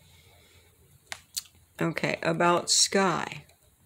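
Hands handle a sketchbook with a soft rustle of paper.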